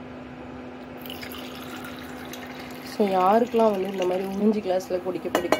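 Liquid pours into a metal cup with a splashing hiss.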